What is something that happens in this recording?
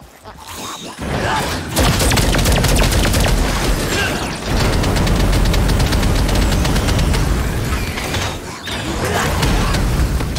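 Magic blasts boom and crackle loudly in quick succession.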